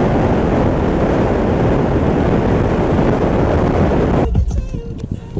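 Wind roars loudly past a moving car.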